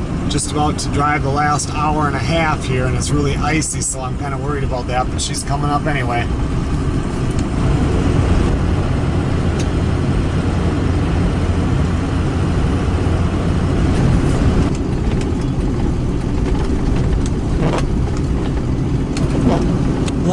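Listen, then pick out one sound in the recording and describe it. A car engine rumbles steadily.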